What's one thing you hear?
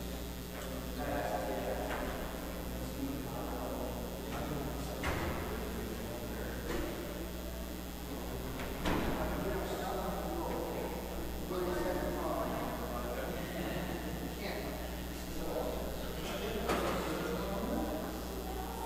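A man chants steadily in a large echoing hall.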